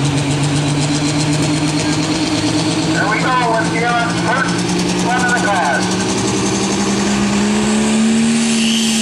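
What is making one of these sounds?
A diesel pickup truck roars under heavy load as it pulls a weight sled, its engine pitch creeping up.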